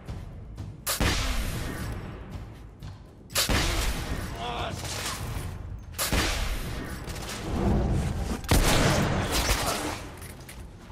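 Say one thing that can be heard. Gunshots boom and echo loudly in a stone space.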